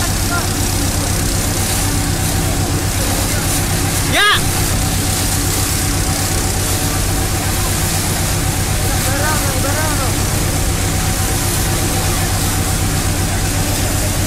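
A crowd of men shouts and calls out outdoors.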